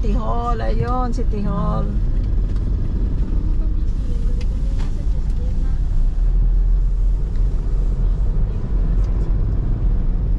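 Traffic drives past outside.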